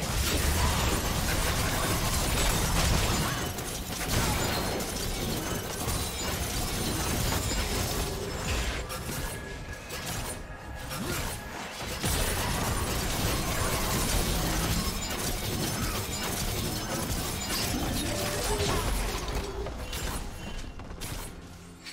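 Game combat effects clash and burst rapidly.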